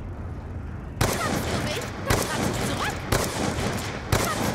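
A sniper rifle fires repeated shots.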